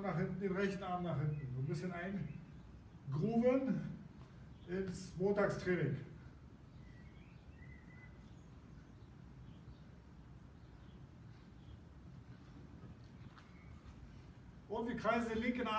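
A middle-aged man speaks with animation, instructing.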